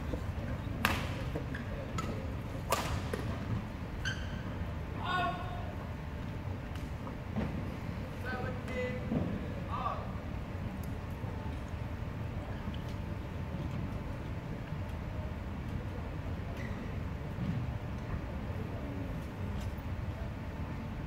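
Badminton rackets smack a shuttlecock back and forth in a large echoing hall.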